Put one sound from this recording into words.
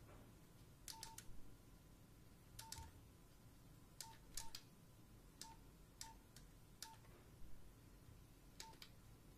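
Keys on a mobile phone click as they are pressed.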